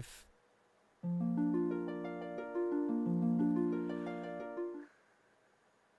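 A short tune of clear, held notes plays.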